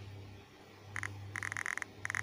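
An electronic buzzing tone sounds in short bursts as a line is drawn.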